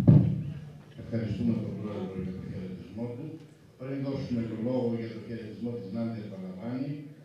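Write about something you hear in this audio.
A man speaks loudly and with animation, echoing in a large hall.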